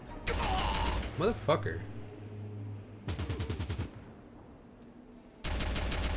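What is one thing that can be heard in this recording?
Automatic gunfire rattles in short bursts.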